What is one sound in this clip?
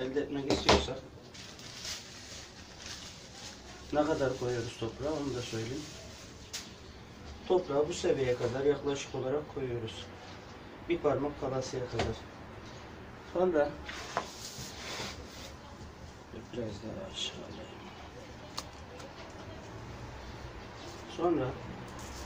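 A middle-aged man talks calmly close by, in pauses.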